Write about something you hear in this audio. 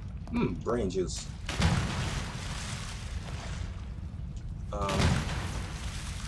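A heavy blow lands with a wet, squelching impact.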